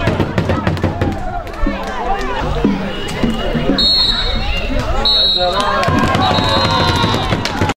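A crowd of spectators shouts and cheers nearby, outdoors.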